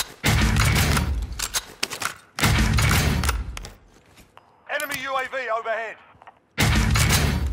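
A submachine gun fires loud rapid bursts.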